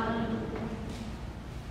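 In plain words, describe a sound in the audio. A man chants briefly.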